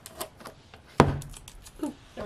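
A box is set down on a table with a knock.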